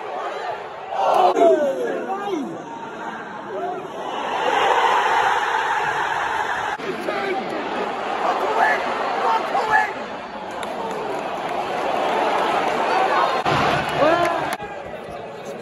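Men in a stadium crowd shout and call out loudly.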